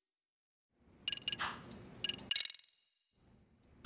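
Short electronic menu chimes beep.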